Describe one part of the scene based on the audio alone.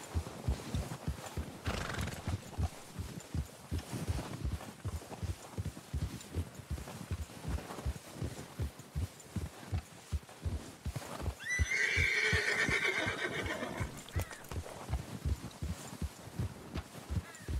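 Wind blows across open snowy ground.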